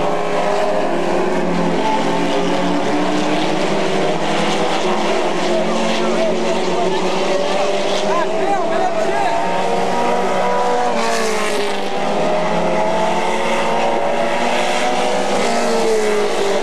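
Race car engines roar loudly as the cars speed around a track.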